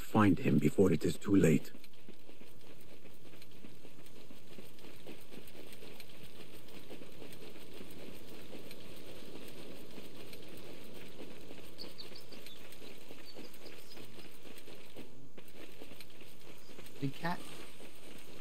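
Footsteps run quickly over sandy ground.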